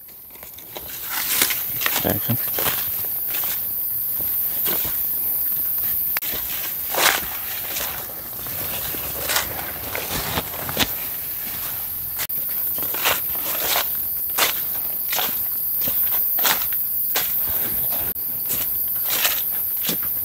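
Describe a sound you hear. Footsteps crunch through dry leaves on the ground.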